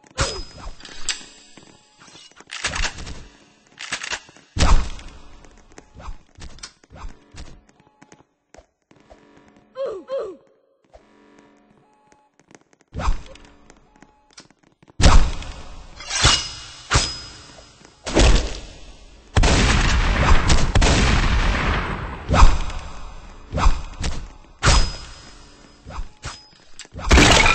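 Sharp slashing hits sound again and again.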